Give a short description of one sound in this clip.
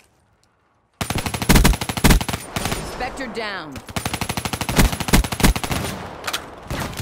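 Rapid automatic gunfire rattles in fast bursts.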